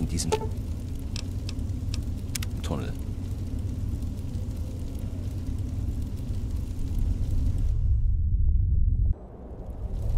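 A heavy low rumble rolls steadily and swells before cutting off.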